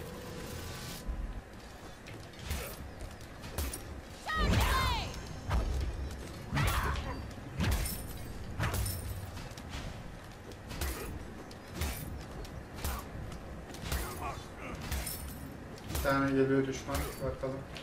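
Swords clash in a video game fight.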